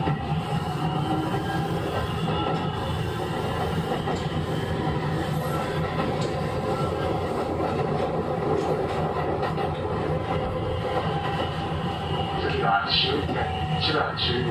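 An electric train's motors hum steadily nearby.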